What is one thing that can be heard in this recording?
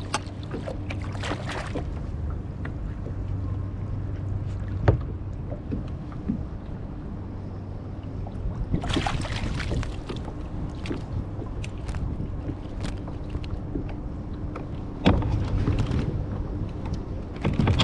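Wind blows outdoors over open water.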